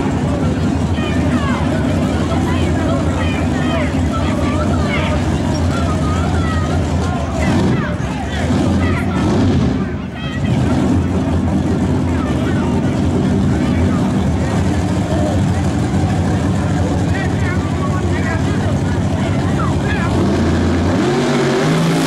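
A crowd cheers and shouts nearby.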